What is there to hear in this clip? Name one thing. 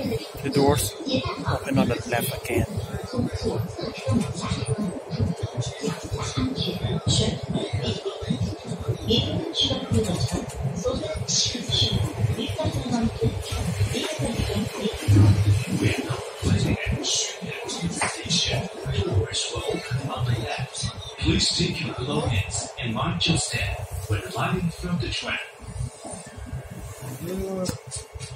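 A subway train rumbles steadily along the track.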